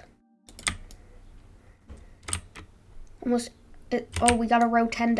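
Short, sharp clicks from a game sound in bursts.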